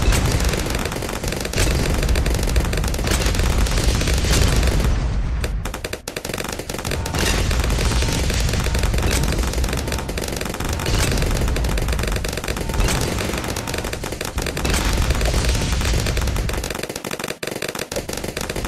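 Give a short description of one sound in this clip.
Balloons pop rapidly, over and over.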